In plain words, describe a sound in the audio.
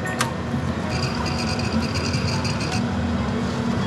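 A coffee machine whirs and hums.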